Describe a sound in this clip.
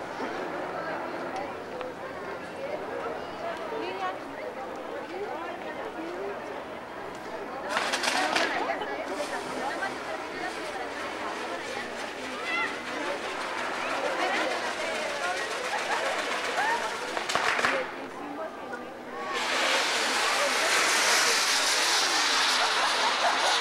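A large crowd chatters and calls out all around outdoors.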